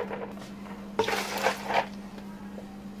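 Milk splashes as it pours into a plastic jug.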